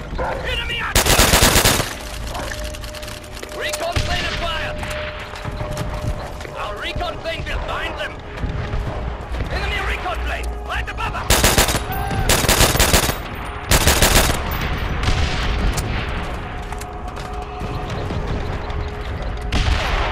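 Rifle shots crack in loud bursts.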